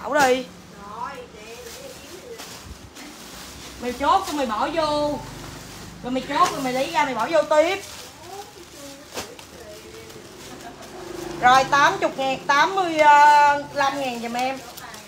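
A young woman talks in a high, animated voice close by.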